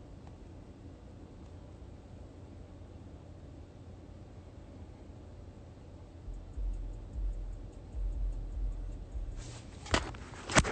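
A car rumbles low as it drives.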